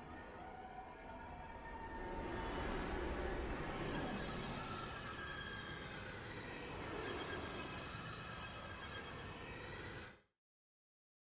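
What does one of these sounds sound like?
A spaceship whooshes past with a rushing roar.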